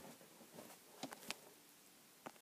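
Close handling knocks and clicks sharply against the microphone.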